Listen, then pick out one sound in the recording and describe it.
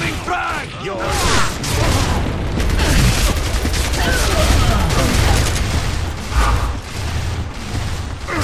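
An automatic rifle fires.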